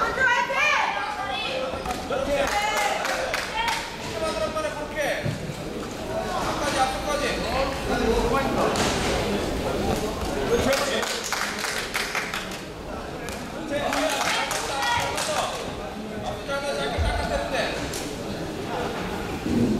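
Men shout loudly from ringside.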